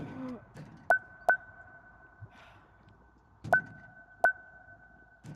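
Keypad buttons beep sharply with each press.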